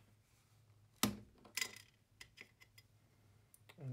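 A plastic device knocks and clicks as hands handle it.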